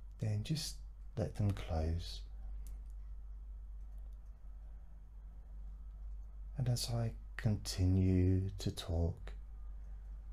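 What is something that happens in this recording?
A man speaks slowly and calmly into a close microphone, with long pauses.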